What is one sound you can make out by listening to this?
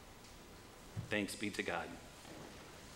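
A middle-aged man speaks briefly into a microphone in a reverberant room.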